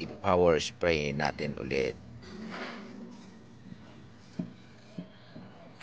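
A sponge rubs and scrubs against a metal surface.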